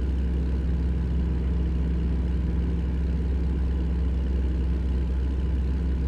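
A truck's diesel engine rumbles steadily while driving.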